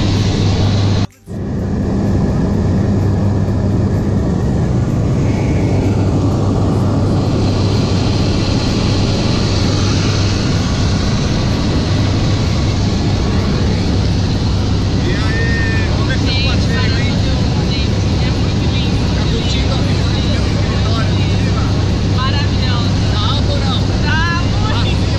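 A small plane's engine drones loudly and steadily.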